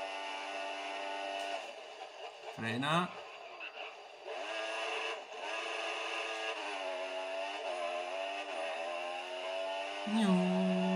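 A racing car engine whines loudly, rising and dropping in pitch as the car accelerates, brakes and changes gear.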